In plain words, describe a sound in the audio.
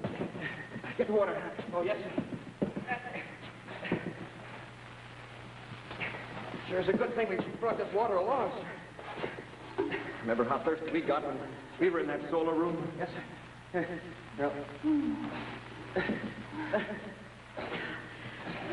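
A man speaks with animation, heard through an old, hissy recording.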